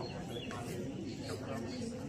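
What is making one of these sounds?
Men talk close by.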